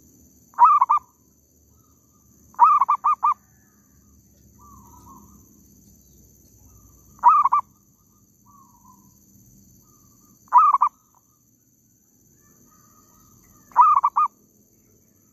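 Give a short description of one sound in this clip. A dove coos close by in short repeated bursts.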